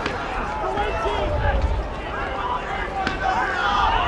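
A football thuds as it bounces on grass.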